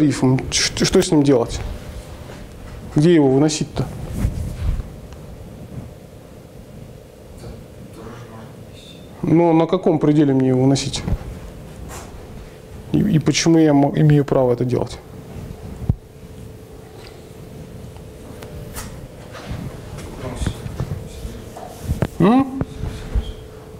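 A young man speaks in bursts in an echoing room.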